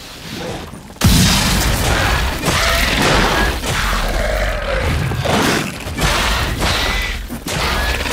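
Sword blows clash and thud against a creature.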